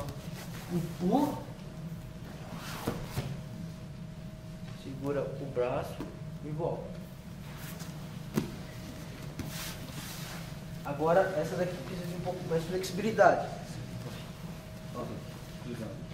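A man speaks calmly to a group.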